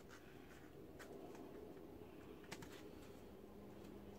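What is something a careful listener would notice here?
A plastic wrapper crinkles softly as hands handle it.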